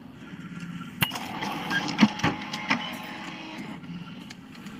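A copier machine hums and whirs as it runs.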